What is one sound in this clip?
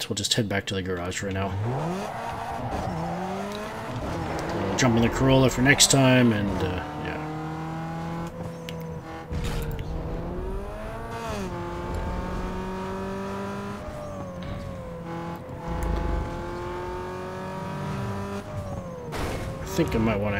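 A car engine revs hard and shifts up through the gears.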